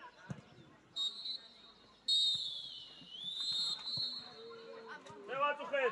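A referee's whistle blows.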